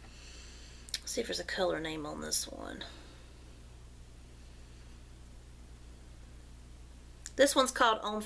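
A young woman speaks calmly, close to a microphone.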